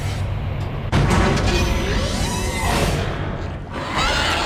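A heavy metal door slides open with a loud grinding rush.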